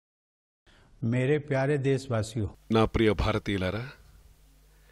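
An elderly man speaks calmly and formally.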